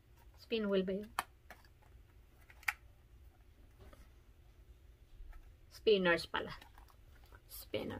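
Plastic packaging crinkles and clicks.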